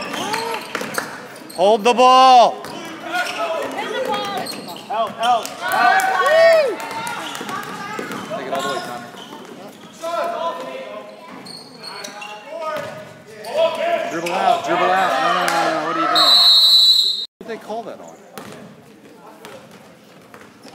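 Adults in a nearby crowd talk and call out.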